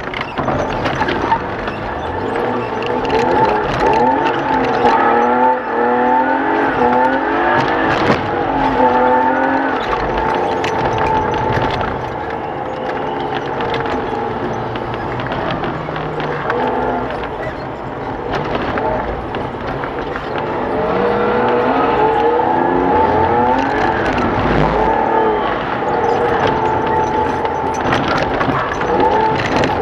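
A car engine hums loudly and revs up and down.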